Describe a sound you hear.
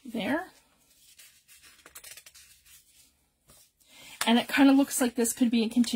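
Paper rustles softly as sheets are handled.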